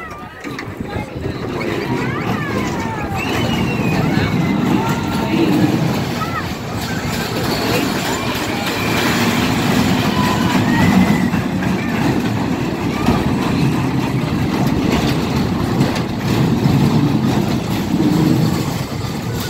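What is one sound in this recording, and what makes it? A carnival ride rumbles and clatters as it spins.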